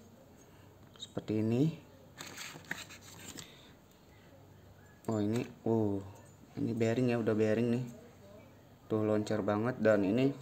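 Metal parts click and tap together.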